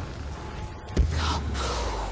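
A loud blast booms.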